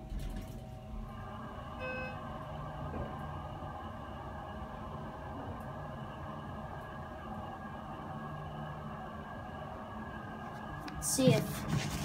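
An elevator motor hums steadily as the car travels.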